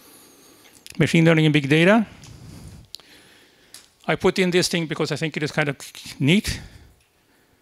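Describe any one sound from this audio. A man speaks through a microphone in short bursts with pauses.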